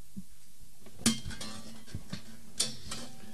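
A man bumps and knocks against a microphone stand close by.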